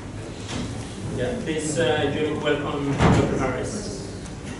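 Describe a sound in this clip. A man speaks quietly at a distance in a room.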